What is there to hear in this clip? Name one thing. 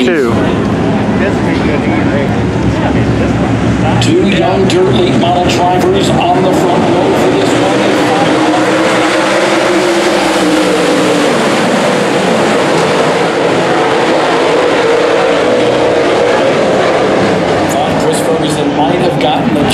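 Race car engines roar loudly as the cars speed around a dirt track.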